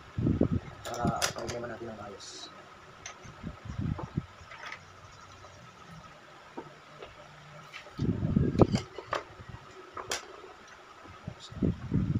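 Small plastic parts click and knock as a man handles them.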